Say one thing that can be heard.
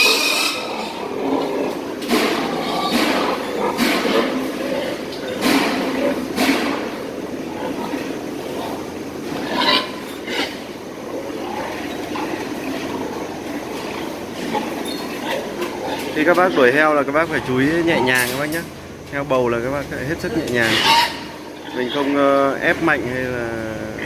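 Pigs grunt and squeal close by.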